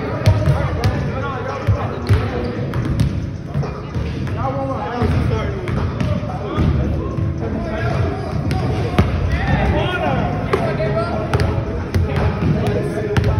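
Basketballs bounce on a wooden gym floor, echoing in a large hall.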